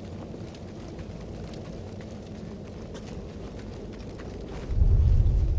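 Footsteps run across sand.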